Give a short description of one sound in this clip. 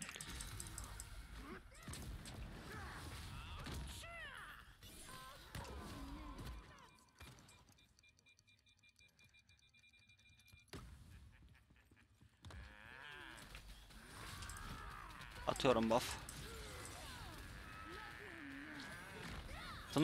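Game battle effects crackle and whoosh.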